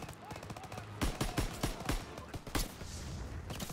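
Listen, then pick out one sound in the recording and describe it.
A rifle fires several loud, sharp shots in close succession.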